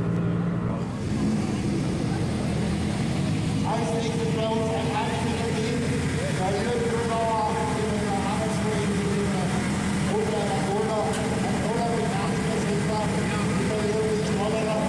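A rally car engine idles and revs up close.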